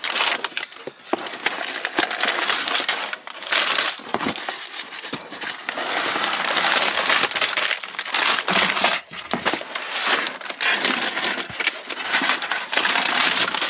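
A cardboard box flap scrapes and bumps.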